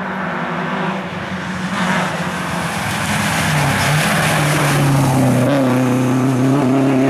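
A rally car engine approaches, revving loudly, and speeds away.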